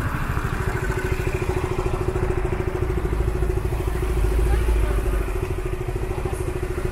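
Car engines hum in slow, heavy traffic close by.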